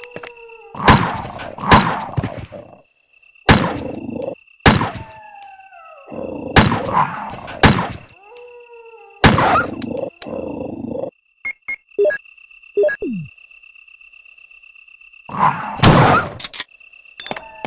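A shotgun fires loud, booming blasts that echo.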